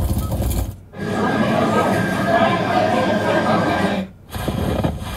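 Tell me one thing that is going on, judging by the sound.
A crowd murmurs through a loudspeaker.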